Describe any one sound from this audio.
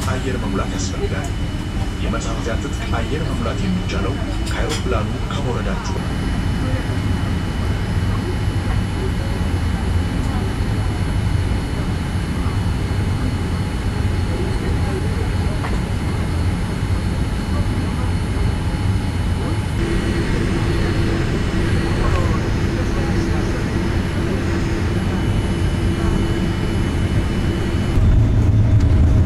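A jet engine drones steadily, heard from inside an aircraft cabin.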